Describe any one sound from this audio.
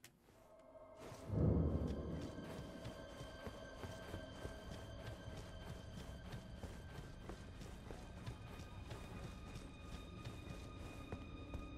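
Footsteps crunch on gravel in an echoing cave.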